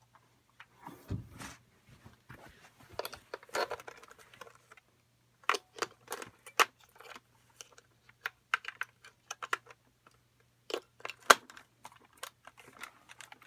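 Hands click and snap the plastic parts of a toy figure.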